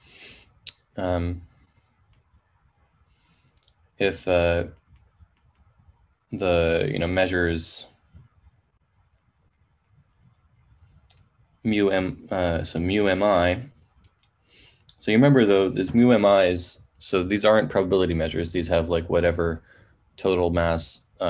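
A man speaks calmly in pauses over an online call.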